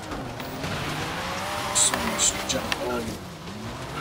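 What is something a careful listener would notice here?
A car scrapes and crashes against a barrier.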